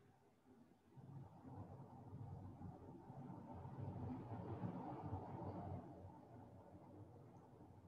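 A man breathes slowly and deeply close to a microphone.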